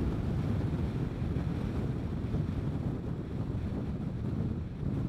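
Wind rushes loudly past a moving motorcycle.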